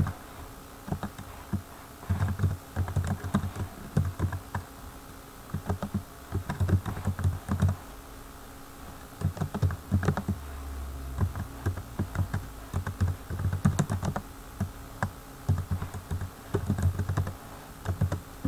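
Keys clatter quickly on a computer keyboard.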